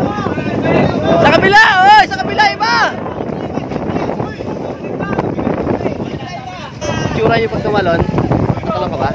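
Water splashes around people wading in shallow sea.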